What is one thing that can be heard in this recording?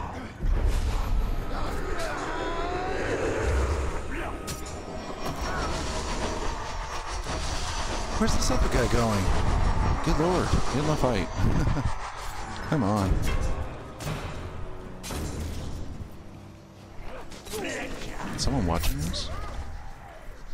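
Creatures grunt and snarl as they are struck.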